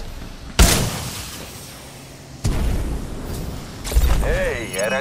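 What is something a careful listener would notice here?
A gun fires loud single shots that echo briefly.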